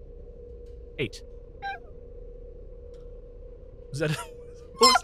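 A man makes short, loud exclamations close to a microphone.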